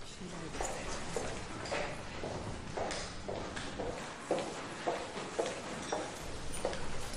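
Footsteps click steadily on a hard floor.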